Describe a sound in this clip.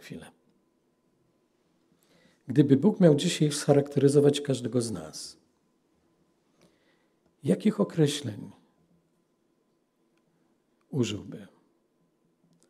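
A middle-aged man speaks calmly and slowly into a microphone, with long pauses.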